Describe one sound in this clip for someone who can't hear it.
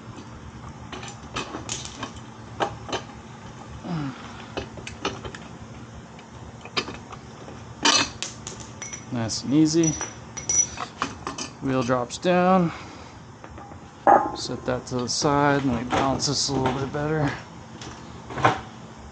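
Small metal parts clink and tap close by.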